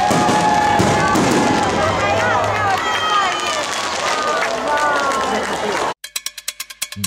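Fireworks crackle and pop loudly overhead.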